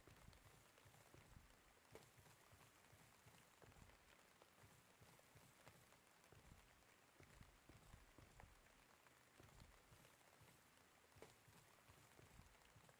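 Heavy footsteps thud over rough ground.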